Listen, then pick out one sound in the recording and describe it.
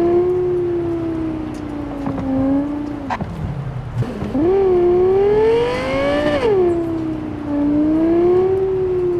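A sports car engine hums steadily, then revs up and drops back as the car speeds along.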